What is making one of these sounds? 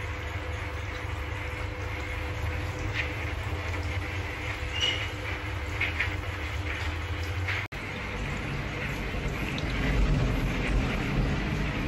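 Fingers scrub a soapy scalp with soft, wet squelching.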